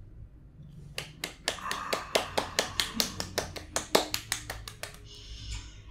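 A young woman claps her hands quickly.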